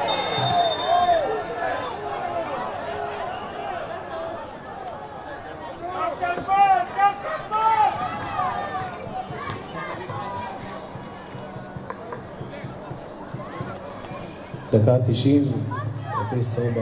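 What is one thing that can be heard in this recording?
Men shout to each other across an open pitch, heard from a distance.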